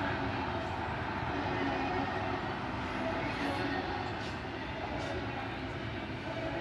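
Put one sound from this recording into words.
A freight train rumbles and clanks steadily past nearby.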